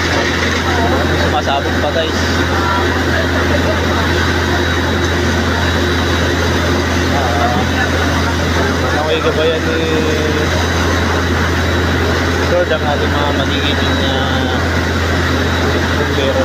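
Water from a fire hose hisses and sprays.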